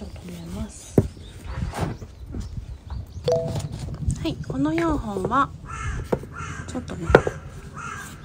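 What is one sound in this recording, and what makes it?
A clay pot knocks down onto a wooden table.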